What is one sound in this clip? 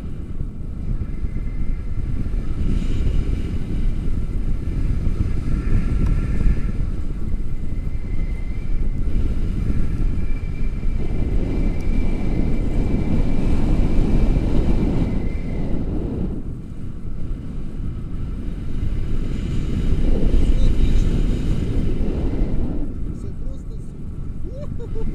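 Strong wind rushes and buffets loudly outdoors.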